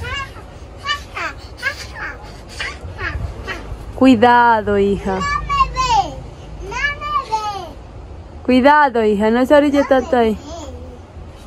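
A young girl squeals and calls out playfully close by.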